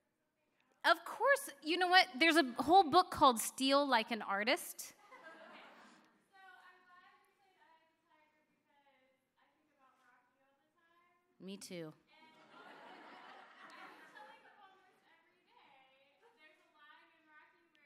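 A woman speaks with emotion through a microphone.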